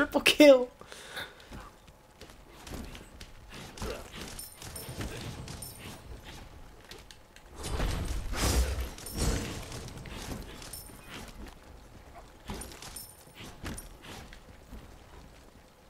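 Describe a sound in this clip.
Blows land and magic blasts crackle in a fight.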